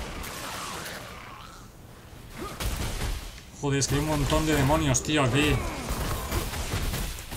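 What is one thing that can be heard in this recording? Magic blasts and hits crash in a video game battle.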